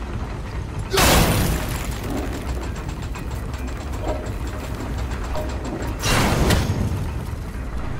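A heavy stone wheel grinds and rumbles as it turns.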